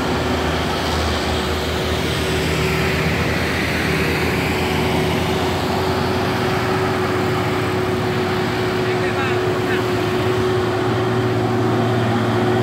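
Car engines and tyres hum on the road.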